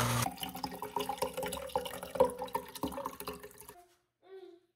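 Juice pours and splashes into a metal strainer.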